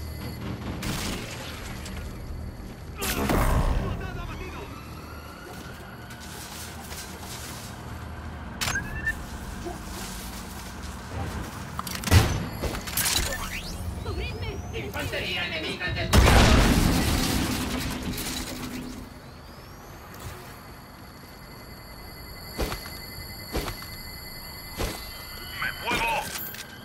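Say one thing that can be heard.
Gunfire from a video game rifle cracks in short bursts.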